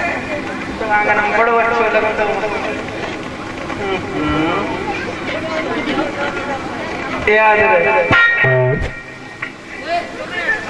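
A young man sings into a microphone through a loudspeaker.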